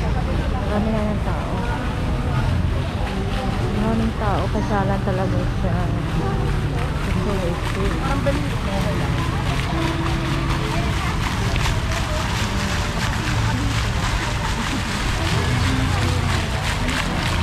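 A fountain splashes steadily.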